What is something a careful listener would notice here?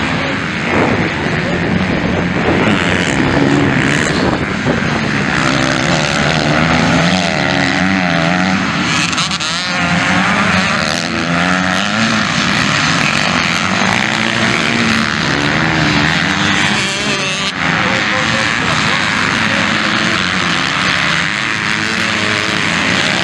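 Motorcycle engines roar and rev loudly as the bikes race over dirt.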